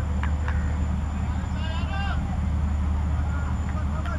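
A cricket bat knocks a ball with a sharp crack.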